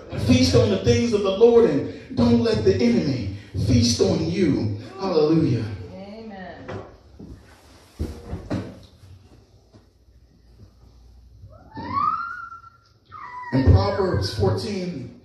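A man speaks with feeling through a microphone and loudspeakers, in a room with a slight echo.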